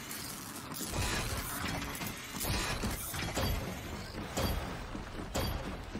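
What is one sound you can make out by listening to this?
A mounted machine gun fires in rapid bursts.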